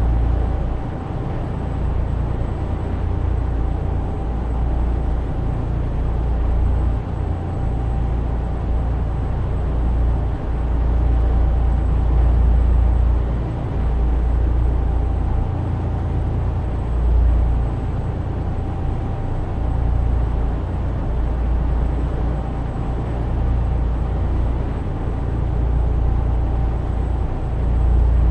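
A truck engine drones steadily at speed.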